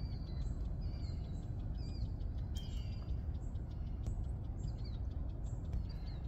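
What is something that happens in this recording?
Deer step softly through dry grass.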